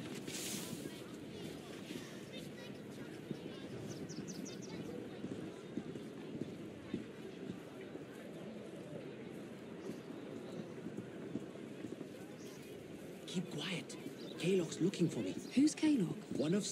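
Footsteps hurry over paving stones.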